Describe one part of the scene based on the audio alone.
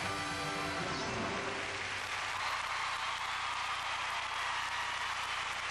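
A large crowd applauds and cheers in a big echoing arena.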